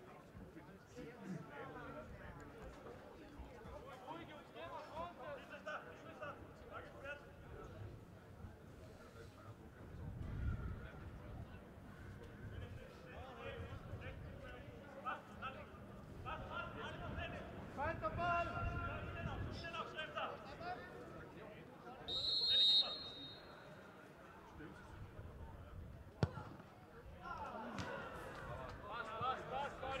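Men shout to each other from a distance outdoors.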